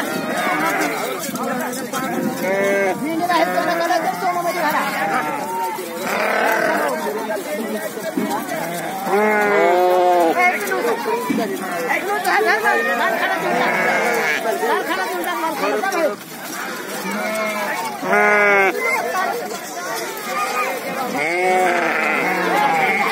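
Sheep bleat loudly and repeatedly close by.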